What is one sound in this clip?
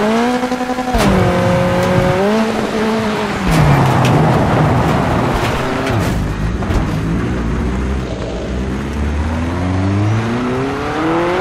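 A racing buggy engine roars and shifts gears, then revs up again.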